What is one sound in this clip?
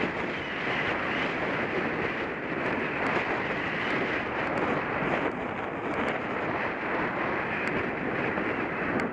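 Bicycle tyres roll and hum on a paved path.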